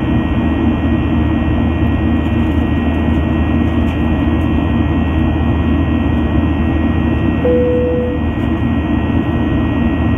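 A jet engine roars steadily from outside an aircraft cabin.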